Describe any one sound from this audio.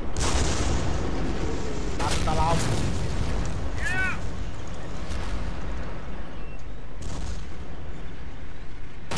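Gunfire and explosions rumble across a battlefield.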